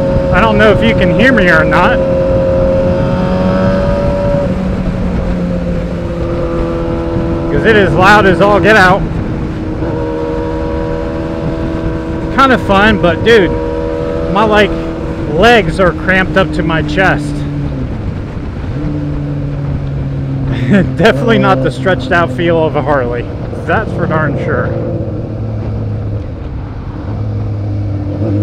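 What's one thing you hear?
A motorcycle engine hums steadily, shifting pitch now and then.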